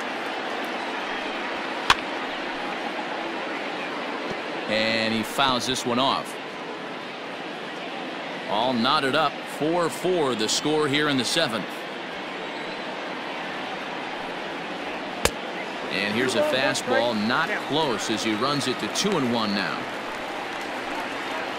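A stadium crowd murmurs steadily.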